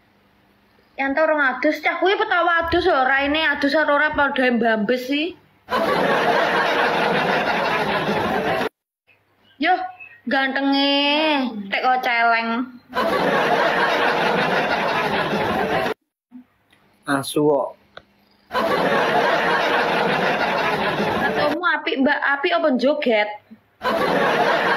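A young woman talks casually over an online call.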